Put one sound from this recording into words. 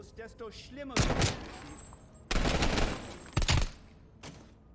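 Loud gunshots ring out in bursts.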